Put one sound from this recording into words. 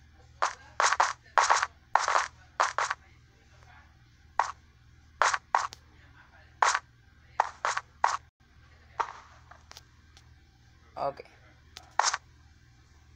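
Blocky footsteps tap quickly on stone, in short bursts.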